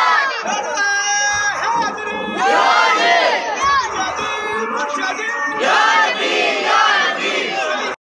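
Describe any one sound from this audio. A man leads the chant, shouting close by.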